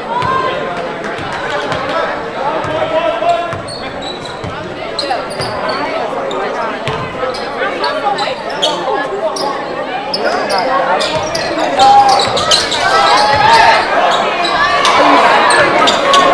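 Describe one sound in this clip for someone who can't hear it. A crowd of spectators chatters and shouts in an echoing gym.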